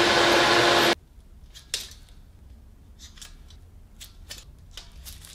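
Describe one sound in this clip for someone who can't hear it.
A metal tape measure rattles and clicks.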